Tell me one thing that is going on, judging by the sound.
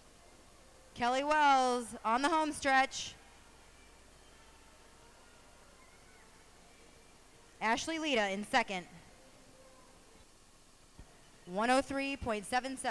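A spectator shouts loudly in encouragement.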